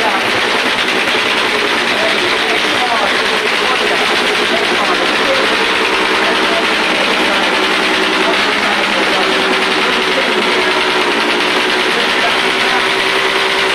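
A motorcycle engine revs nearby.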